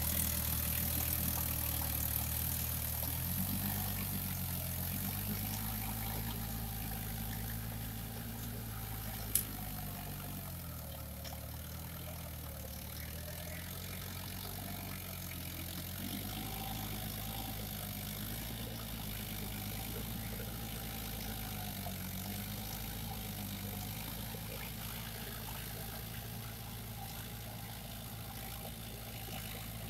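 A diesel tractor engine chugs and slowly moves away into the distance.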